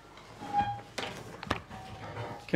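Paper rustles close to a microphone.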